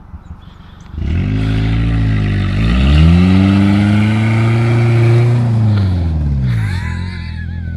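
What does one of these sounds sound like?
A pickup truck engine revs loudly, rising and falling.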